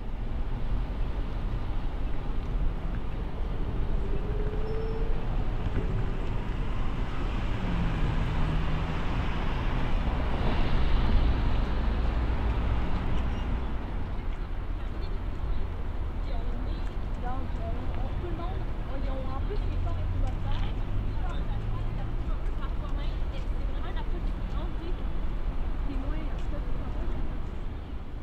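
Cars drive past on a city street outdoors.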